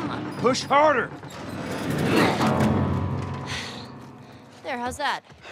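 A heavy piano scrapes and rumbles across a wooden floor.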